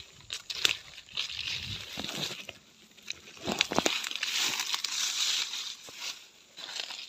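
Leaves rustle and brush as plants are pushed aside.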